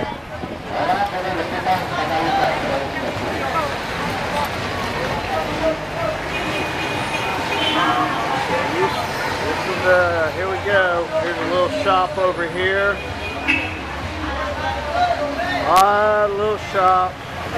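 Women talk loudly and with animation close by.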